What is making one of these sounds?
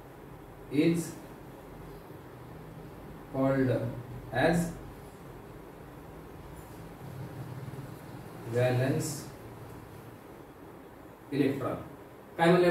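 A young man speaks slowly, in short phrases with long pauses.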